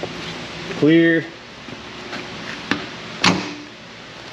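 A metal lift arm clanks as it is swung into place.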